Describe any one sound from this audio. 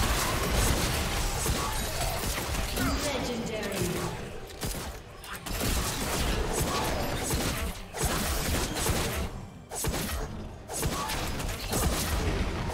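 Magic spells crackle and burst in a fast fight.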